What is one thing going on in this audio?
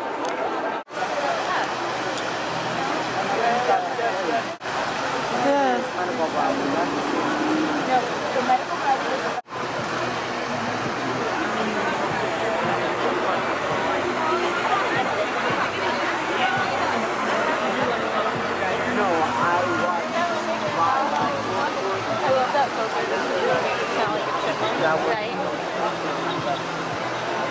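Water splashes steadily from a fountain outdoors.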